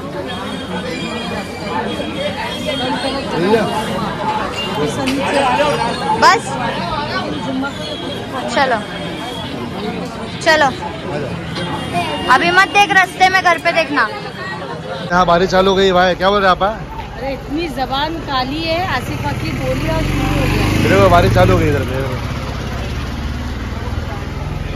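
A crowd chatters all around.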